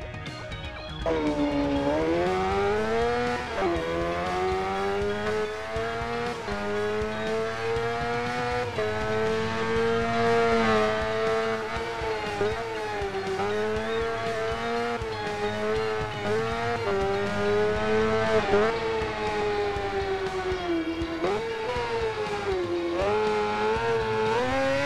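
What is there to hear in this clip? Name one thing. A motorcycle engine roars loudly, its pitch rising and falling as it shifts gears.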